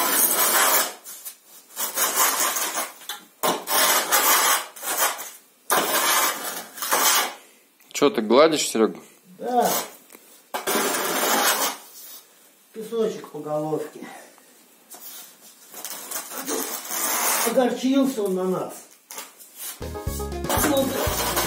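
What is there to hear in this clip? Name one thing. A metal pipe scrapes back and forth through loose sand in short, rough strokes.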